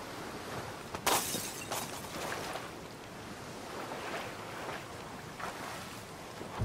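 Water splashes as a person wades through it.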